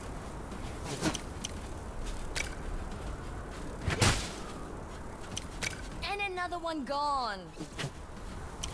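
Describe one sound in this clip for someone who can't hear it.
Short sharp clicks and thuds of game effects sound now and then.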